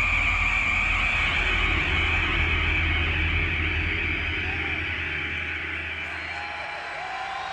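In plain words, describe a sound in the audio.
A bass guitar plays loud, distorted notes through large amplifiers.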